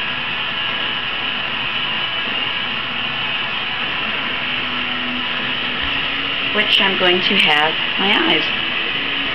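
A gas torch roars with a steady hiss.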